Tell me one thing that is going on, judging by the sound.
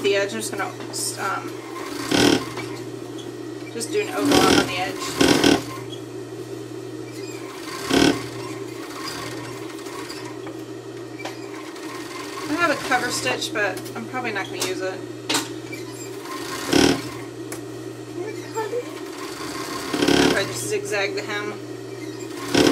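A sewing machine hums and whirs steadily as it stitches.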